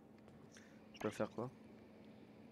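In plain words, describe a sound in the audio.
A game menu opens with a short electronic blip.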